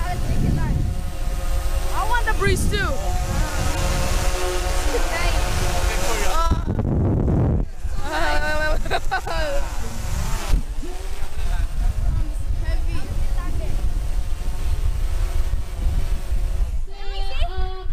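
Young boys talk and laugh excitedly close by.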